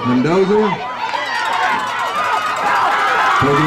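A crowd cheers and yells loudly outdoors.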